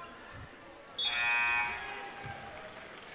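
A referee's whistle blows a short, shrill blast.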